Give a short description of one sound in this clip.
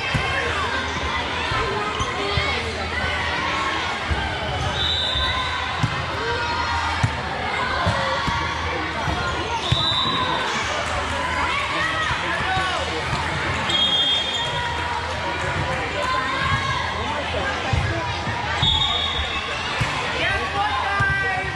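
A crowd of girls and adults chatters and calls out in a large echoing hall.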